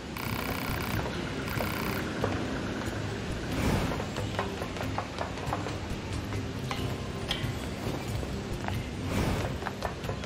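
Footsteps tap on wooden planks.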